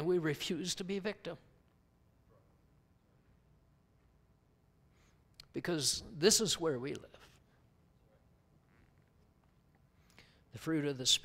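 A man speaks calmly through a microphone, pausing between phrases.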